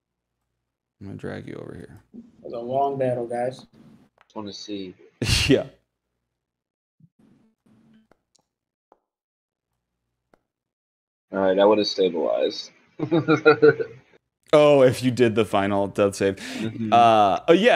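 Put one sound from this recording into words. Several men talk and joke over an online call.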